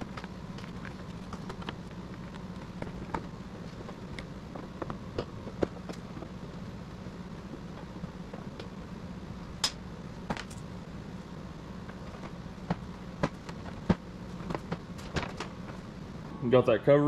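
A ratchet wrench clicks as bolts are loosened.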